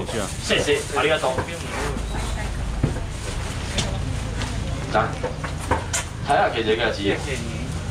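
Men talk nearby in muffled voices.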